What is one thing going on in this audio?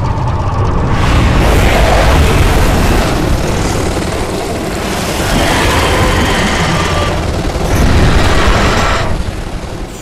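A huge creature rumbles and roars as it flies through the air.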